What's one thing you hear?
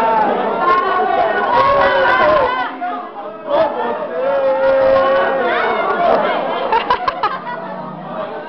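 A crowd of people chatter in the background.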